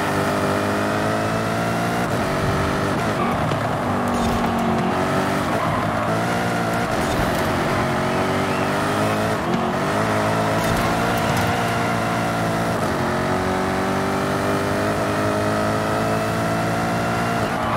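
A sports car engine roars steadily, rising and falling in pitch as it shifts gears.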